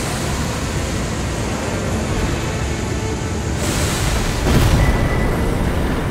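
A glittering burst swells loudly as a creature dissolves into sparks.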